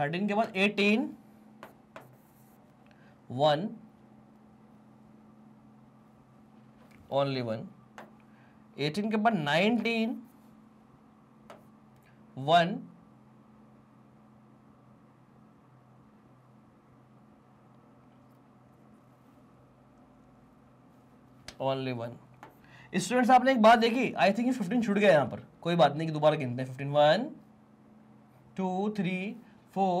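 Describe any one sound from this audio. A young man speaks into a close microphone, explaining calmly with pauses.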